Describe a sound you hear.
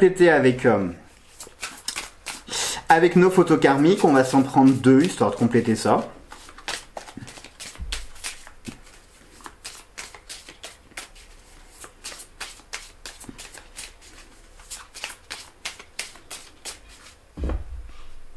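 Cards shuffle and riffle in a man's hands.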